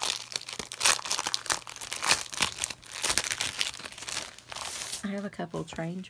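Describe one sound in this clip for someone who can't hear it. Plastic wrapping crinkles and rustles as it is handled.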